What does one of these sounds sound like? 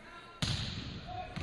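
A volleyball is struck hard in an echoing gym.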